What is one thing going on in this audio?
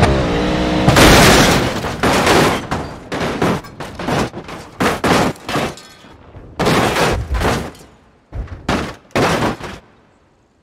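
A car crashes and tumbles, with repeated loud bangs and crunching metal.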